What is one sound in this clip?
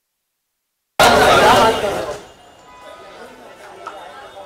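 A crowd of men and women chatters and calls out nearby.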